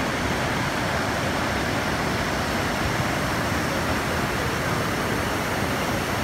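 A waterfall pours and splashes heavily.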